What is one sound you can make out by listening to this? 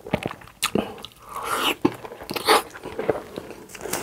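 A young man bites into a crunchy piece of food close to a microphone.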